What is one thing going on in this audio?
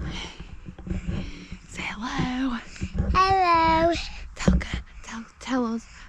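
A small child babbles and squeals.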